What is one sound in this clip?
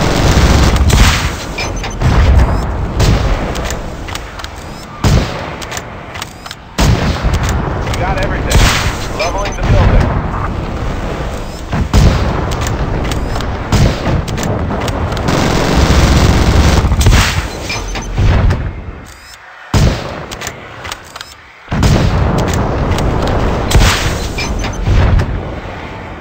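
Heavy gunfire and explosions rumble and crack in rapid bursts.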